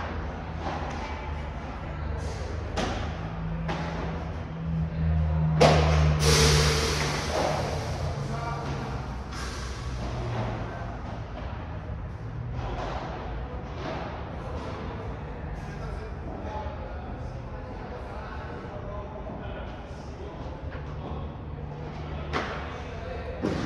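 Padel rackets hit a ball with sharp, echoing pops.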